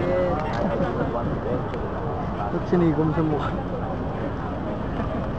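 A crowd of men talks and calls out nearby outdoors.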